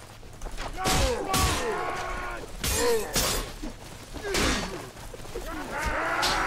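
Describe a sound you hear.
Weapons clash and thud against a wooden shield.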